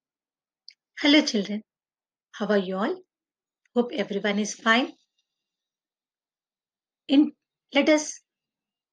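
A young woman speaks calmly into a nearby microphone, in short phrases with pauses.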